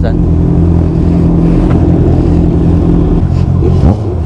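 Motorcycle engines idle with a deep rumble close by.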